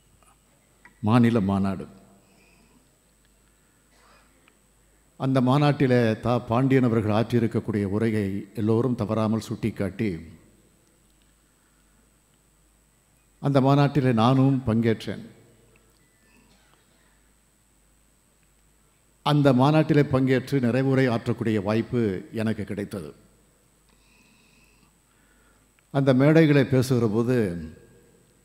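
A middle-aged man speaks slowly and deliberately into a microphone, heard through a loudspeaker, pausing between phrases.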